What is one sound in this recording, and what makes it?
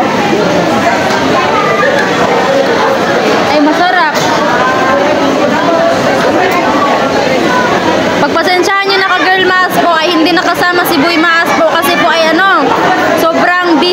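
A crowd of people chatters all around in a busy, echoing hall.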